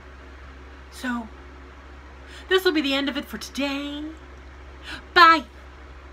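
A middle-aged woman speaks close by with animation, in short bursts.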